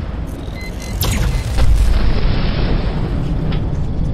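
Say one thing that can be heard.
An explosion bursts with a heavy roar.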